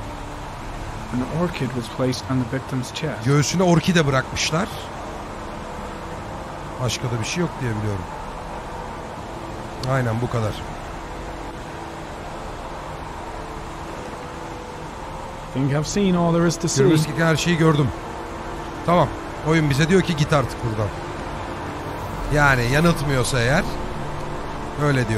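A young man talks animatedly into a close microphone.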